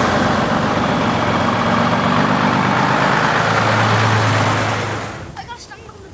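A lorry engine idles and revs nearby.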